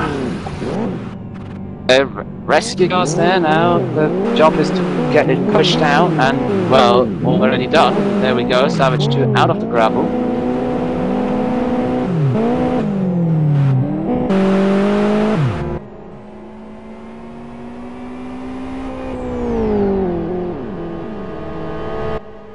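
Racing car engines roar and rev, rising and falling in pitch as gears shift.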